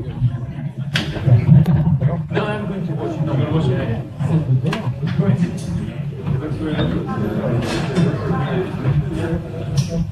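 A crowd of people murmurs and chatters in a large room.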